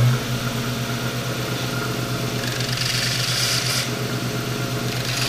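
A belt sander motor hums steadily.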